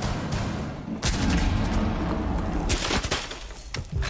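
A rifle fires a rapid burst of shots.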